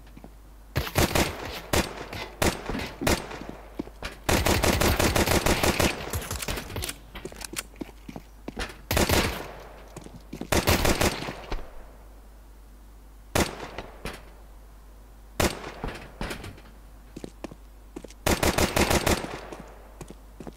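A pistol fires shot after shot in quick bursts.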